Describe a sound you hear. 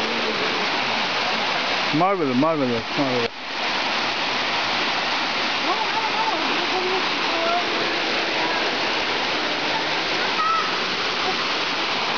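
Water rushes over rocks.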